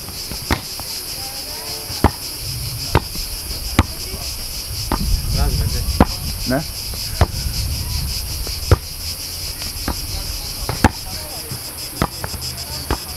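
A football is kicked and headed back and forth with dull thumps.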